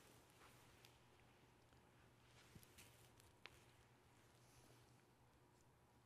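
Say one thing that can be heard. Heavy cloth rustles as a man bows low.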